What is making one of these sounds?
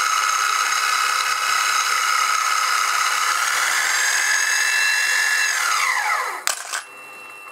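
An electric motor whines steadily, then winds down and stops.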